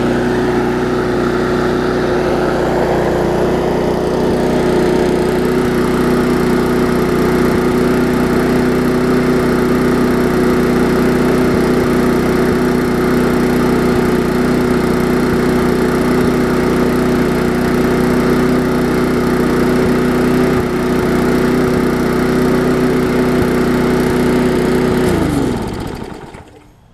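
A lawn mower engine idles steadily close by, then winds down and stops.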